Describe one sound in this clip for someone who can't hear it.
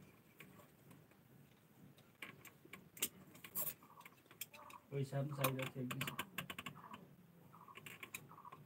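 Small metal tools tap and click against a plastic casing.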